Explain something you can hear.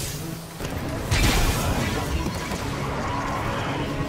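A burst of energy whooshes loudly.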